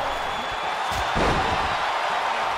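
A body slams hard onto a wrestling ring mat with a thud.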